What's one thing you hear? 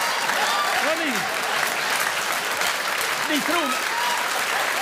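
Audience members whistle and cheer.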